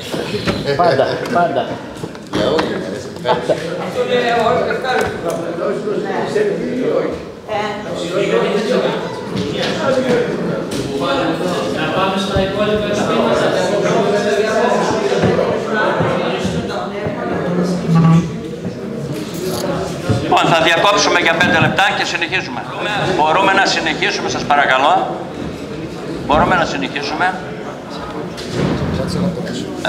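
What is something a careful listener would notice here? Several men talk over one another loudly in a large echoing hall.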